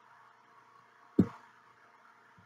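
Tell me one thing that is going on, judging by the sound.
A stiff board is set down on a metal tray with a light knock.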